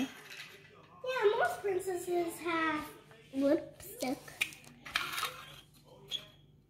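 A young girl talks close by in a high voice.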